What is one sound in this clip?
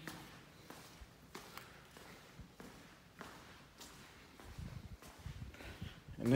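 Footsteps tap on a hard tiled floor at a steady walking pace.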